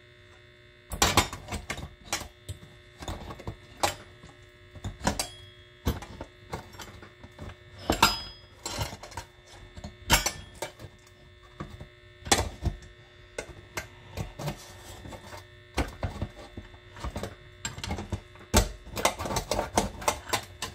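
A hand-cranked metal food mill clicks and scrapes as it turns.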